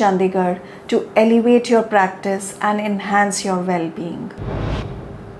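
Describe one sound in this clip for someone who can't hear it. A woman speaks calmly and clearly into a close microphone.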